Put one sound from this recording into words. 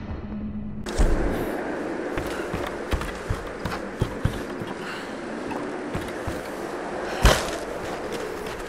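Footsteps thud on wooden planks and stone.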